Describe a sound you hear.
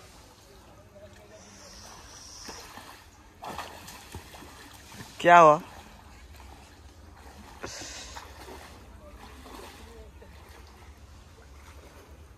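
A man wades through shallow water with soft splashes.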